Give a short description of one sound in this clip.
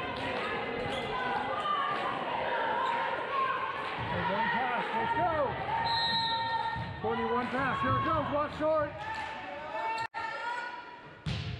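Young women call out and chatter in a large echoing gym.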